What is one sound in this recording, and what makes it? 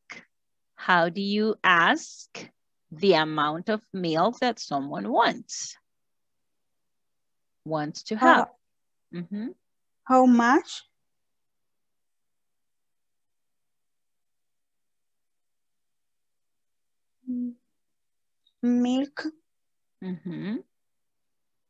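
A woman speaks calmly and clearly through an online call, in short bursts with pauses.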